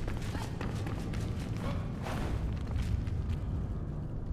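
Footsteps crunch over loose ground.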